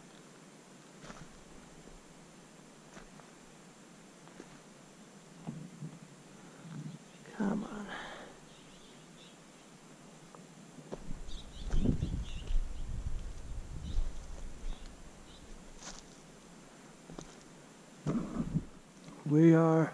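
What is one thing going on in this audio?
Footsteps crunch on loose gravel and stones.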